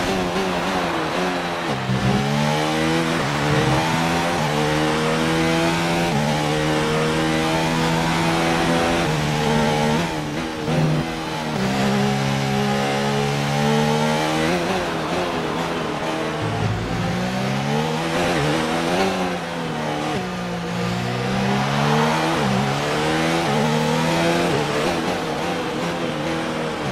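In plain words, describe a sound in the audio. A racing car engine screams at high revs, rising and falling in pitch as the gears shift.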